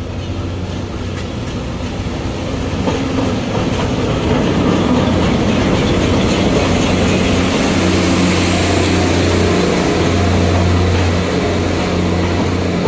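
A diesel locomotive engine rumbles loudly close by.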